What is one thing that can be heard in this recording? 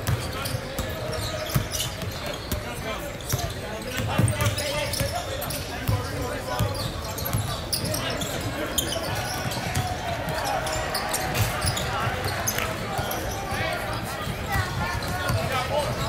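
A crowd of spectators chatters nearby.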